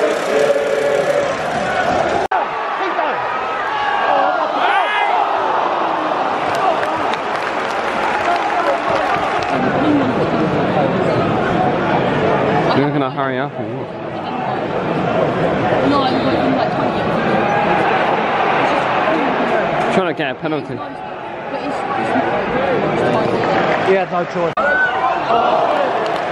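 A large stadium crowd chants and sings loudly outdoors.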